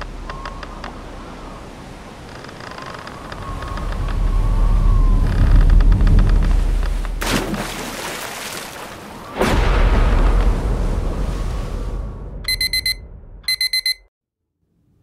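Waves wash and churn around a wooden pier.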